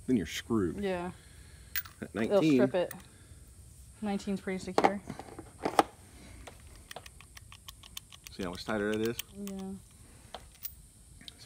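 A metal socket clicks softly in a man's hands.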